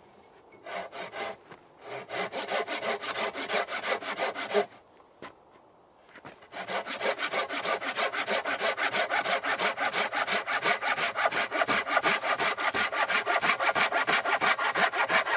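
A hand saw cuts through wood with quick, steady strokes.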